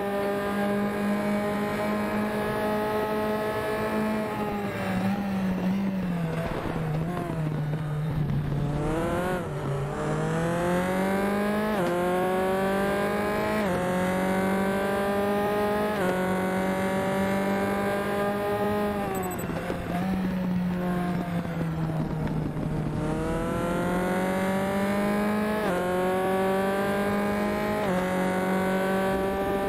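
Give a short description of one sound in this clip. A racing car engine whines at high revs, rising through the gears and dropping as it slows for corners.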